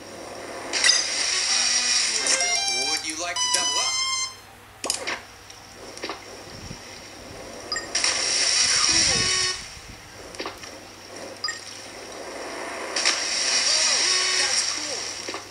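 A game's water splash rushes loudly through a small speaker.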